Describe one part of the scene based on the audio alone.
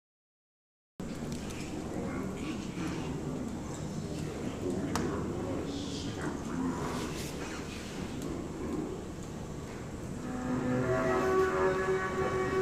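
A cello is bowed.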